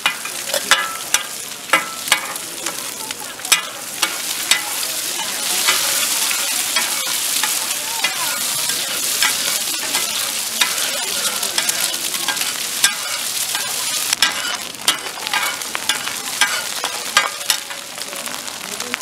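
A metal spatula scrapes and clacks against a hot griddle.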